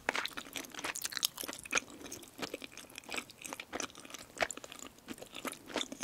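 Chopsticks clink against a bowl.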